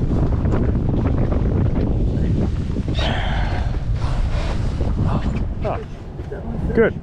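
Wind buffets and rumbles outdoors.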